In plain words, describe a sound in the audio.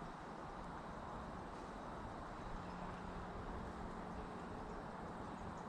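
Wind blows steadily across the microphone outdoors.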